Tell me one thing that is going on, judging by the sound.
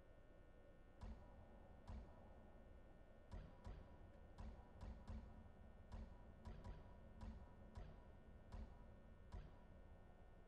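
Soft menu clicks tick one after another.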